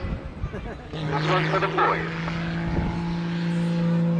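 Car tyres squeal and screech on the track.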